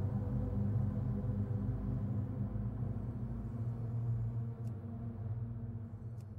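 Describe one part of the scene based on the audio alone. Magic spells hum and crackle in a fantasy battle.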